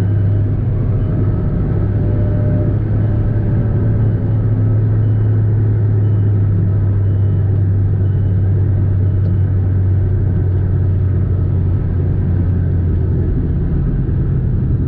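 A car engine hums steadily from inside the car as it drives at speed.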